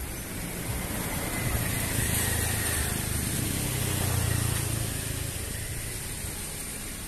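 Cars drive past on a nearby street, rising and fading.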